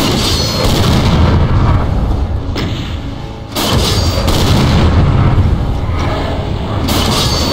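A shotgun fires with loud, sharp blasts.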